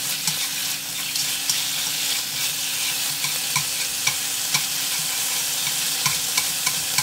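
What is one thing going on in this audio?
Meat sizzles steadily in a hot frying pan.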